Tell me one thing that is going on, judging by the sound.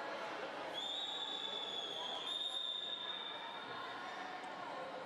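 A referee's whistle blows one long steady blast.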